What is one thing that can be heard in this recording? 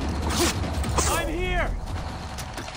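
A soldier cries out in pain.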